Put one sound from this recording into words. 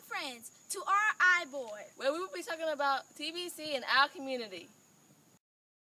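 Young girls chant loudly and with animation, close by.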